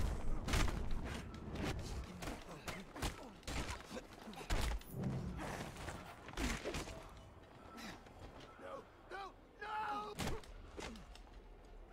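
Heavy punches and kicks thud and smack in a fast fight.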